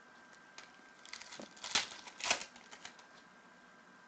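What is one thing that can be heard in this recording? Trading cards shuffle and rustle in hands.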